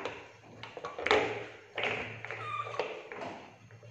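Billiard balls clack against each other.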